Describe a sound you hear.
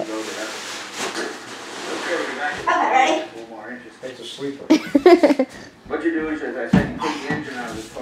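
Footsteps thud on a hard floor as a boy jumps and lands.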